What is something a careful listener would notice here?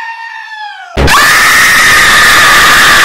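A creature lets out a loud, harsh shriek.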